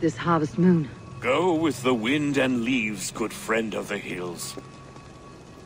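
An elderly man speaks warmly, close by.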